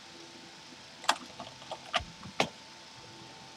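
A block thuds into place with short knocks.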